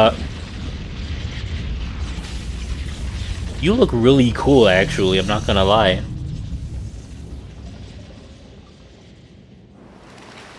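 A deep underwater rumble drones and slowly fades.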